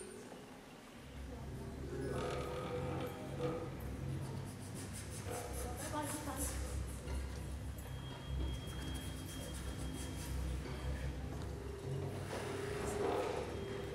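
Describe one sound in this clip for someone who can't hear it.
A double bass plays deep bowed notes.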